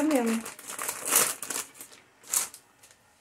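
A stiff pasta sheet taps and scrapes against a tray.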